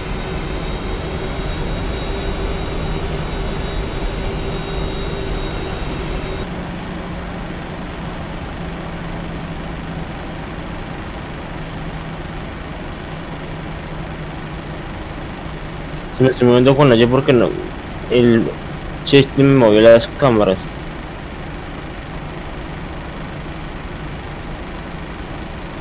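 A jet engine hums steadily as an airliner taxis.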